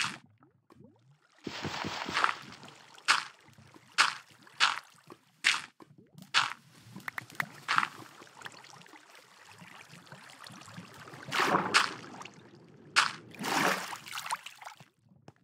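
Water splashes and flows steadily.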